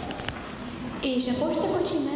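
A young girl sings into a microphone through loudspeakers.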